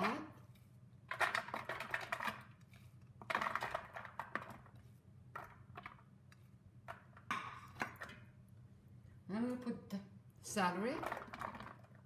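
Chopped vegetables drop into an empty pot.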